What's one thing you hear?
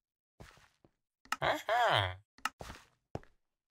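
A game menu clicks as an item is bought.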